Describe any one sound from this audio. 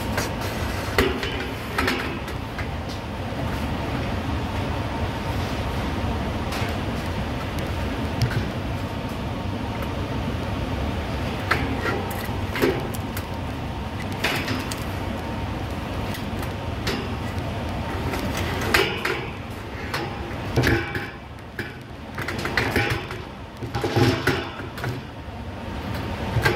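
Metal panels clank and rattle.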